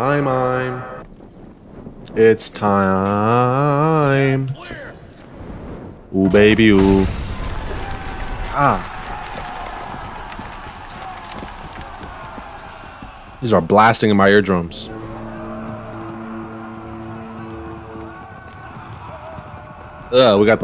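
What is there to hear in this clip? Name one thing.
A young man shouts and exclaims with animation close to a microphone.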